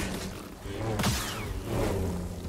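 Fire bursts with a roar.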